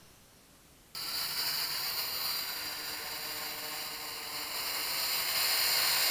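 A small drone's propellers whine with a steady high buzz close by.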